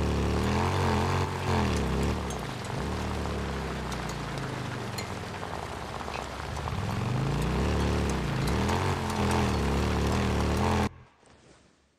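Tyres crunch over rough gravel.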